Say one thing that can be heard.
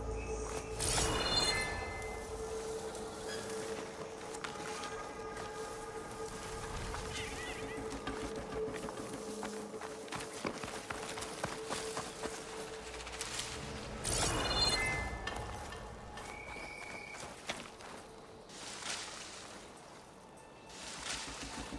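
Footsteps patter quickly over soft ground and leaves.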